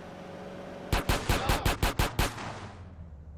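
Pistol shots fire in quick succession.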